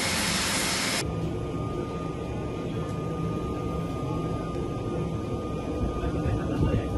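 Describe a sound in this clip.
Aircraft engines drone steadily, heard from inside the hold.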